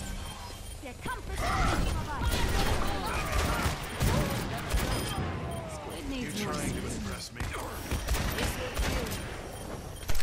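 A video game grenade launcher fires with booming blasts.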